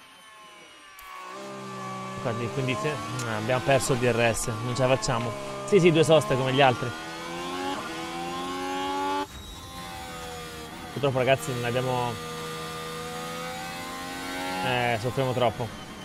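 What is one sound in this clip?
A racing car engine whines at high revs, rising and falling as it shifts gears.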